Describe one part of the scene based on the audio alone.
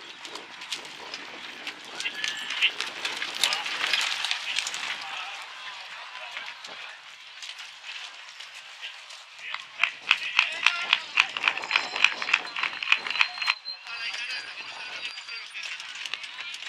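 Carriage wheels roll and crunch over gravel.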